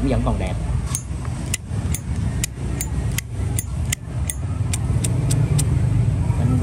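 A metal lighter lid clicks open and snaps shut.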